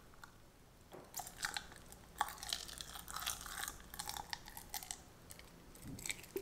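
Powder is sprinkled into a glass bowl of water with a soft patter.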